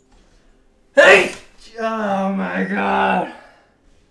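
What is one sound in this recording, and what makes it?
A young man shouts or laughs loudly close to a microphone.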